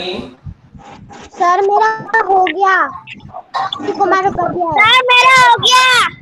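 A second young boy speaks over an online call.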